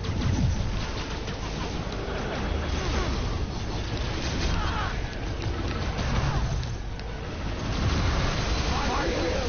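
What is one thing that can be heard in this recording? Heavy blows thud in a fight.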